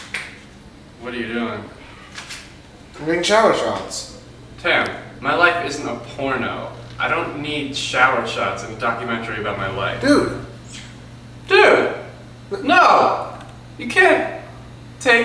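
A young man talks with animation close by, in a small echoing room.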